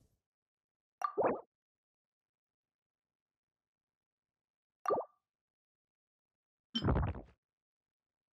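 Soft chimes ring out briefly when menus open.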